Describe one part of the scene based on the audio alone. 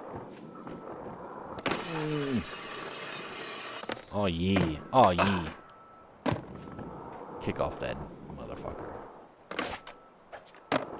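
Skateboard wheels roll and grind over concrete.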